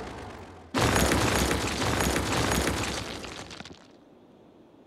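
A rumbling crash of demolition sounds briefly.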